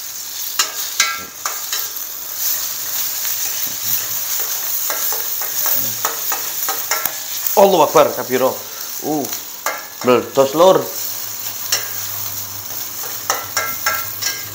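A spatula scrapes and clinks against a frying pan.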